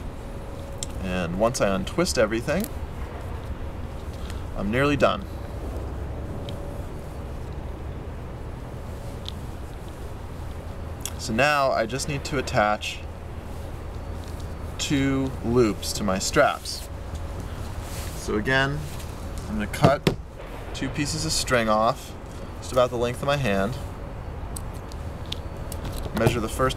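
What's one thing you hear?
A man speaks calmly close by, in short phrases with pauses.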